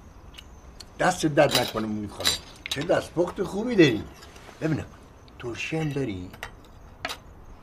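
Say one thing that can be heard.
An elderly man talks calmly at close range.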